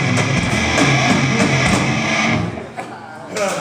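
A rock band plays loudly with distorted electric guitars and pounding drums.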